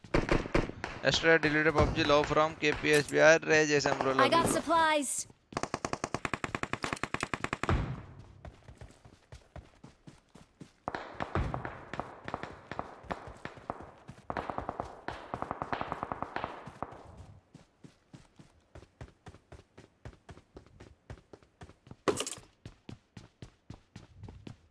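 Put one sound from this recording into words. Footsteps patter quickly and steadily over hard ground.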